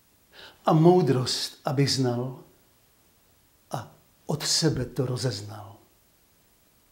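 An elderly man speaks with animation into a close microphone.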